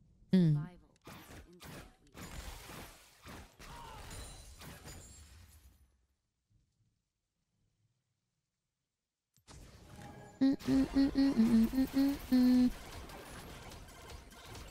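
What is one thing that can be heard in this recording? Video game combat effects whoosh and clash.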